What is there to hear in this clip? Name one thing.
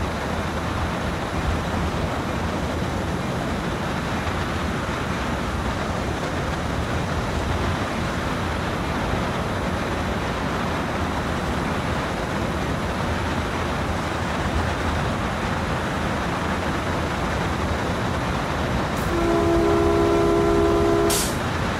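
Train wheels clatter and roll along rails.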